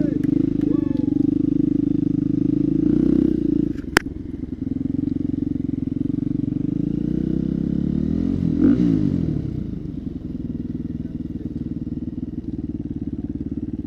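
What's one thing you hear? A dirt bike engine revs loudly close by, rising and falling.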